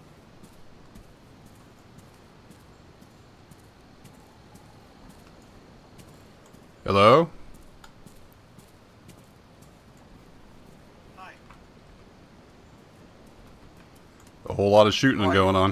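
Footsteps crunch softly on a gravel path.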